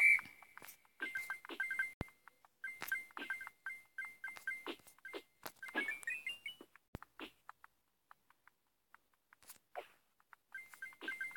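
Coin pickup chimes ring in a mobile game.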